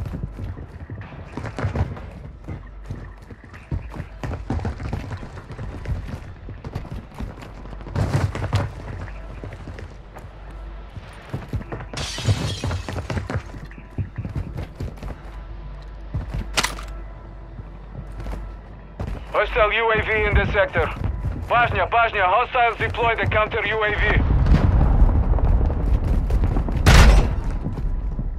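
Quick footsteps thud and scuff on a hard floor.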